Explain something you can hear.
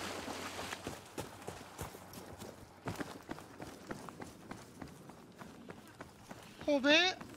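Footsteps crunch quickly over rocks and grass.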